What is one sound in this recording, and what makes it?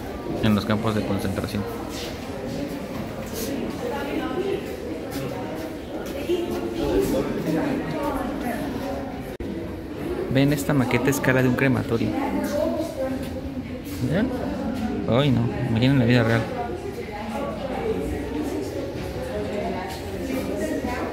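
Adult men and women talk in low voices nearby in an echoing hall.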